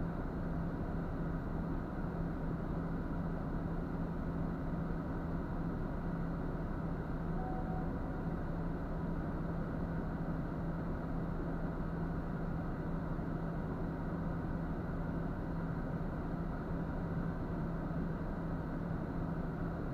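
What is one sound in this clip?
A truck's diesel engine idles steadily up close, heard from inside the cab.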